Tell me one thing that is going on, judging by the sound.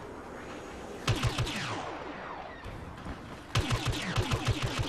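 A blaster rifle fires a quick burst of sharp shots.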